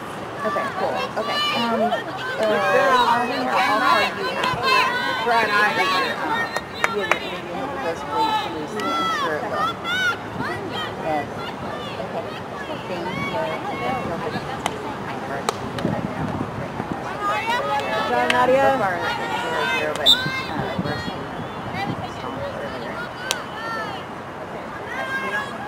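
Spectators shout and cheer from the sidelines outdoors.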